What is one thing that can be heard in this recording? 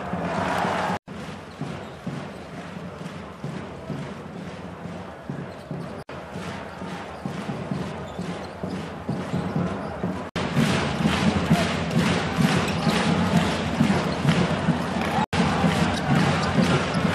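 A large crowd cheers and claps in an echoing arena.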